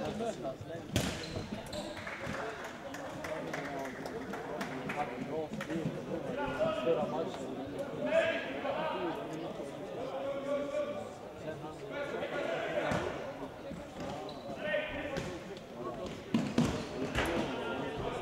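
A ball is kicked hard and thuds through a large echoing hall.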